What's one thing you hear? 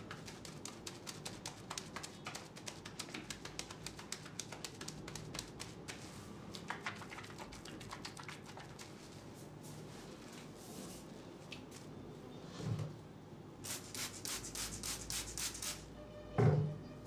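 Hands squish and rub lather in quick strokes, close up.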